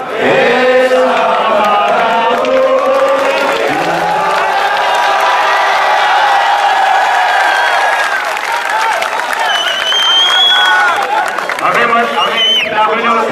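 A large crowd of men sings together outdoors.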